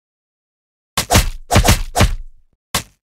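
Cartoon punches and impacts thump in quick bursts.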